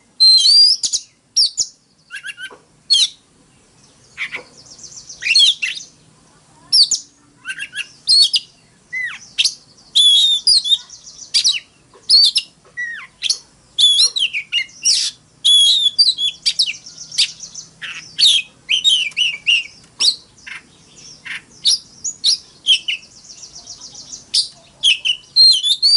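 A songbird sings loud, varied whistling phrases close by.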